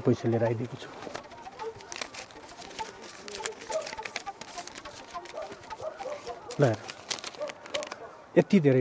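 Banknotes rustle and flick as they are counted.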